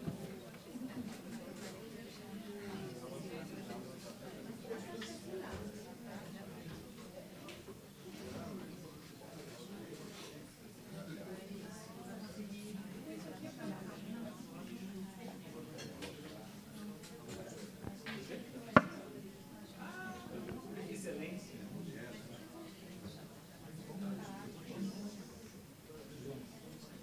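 Many men and women chat quietly in a large room.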